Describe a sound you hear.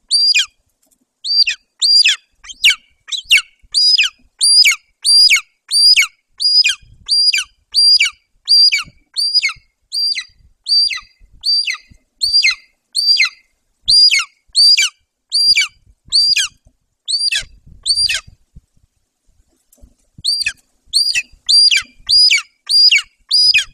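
A large bird gives rapid, repeated high piercing calls.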